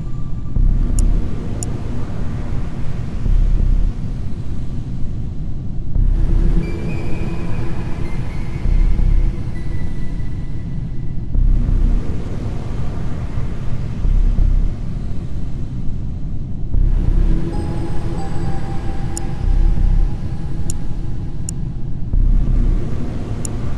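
Game menu buttons click sharply a few times.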